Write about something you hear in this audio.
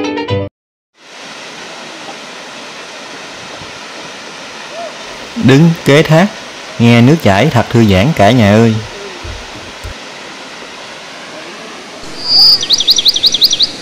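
Water from a waterfall rushes and splashes steadily into a pool.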